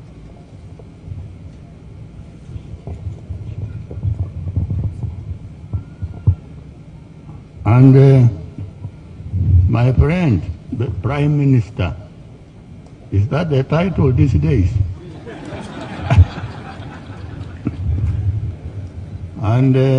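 An elderly man speaks slowly and deliberately into a microphone, heard through loudspeakers outdoors.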